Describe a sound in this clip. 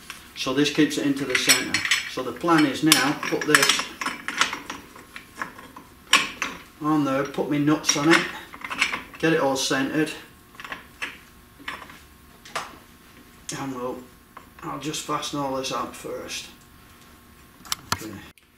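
Metal parts clink and click.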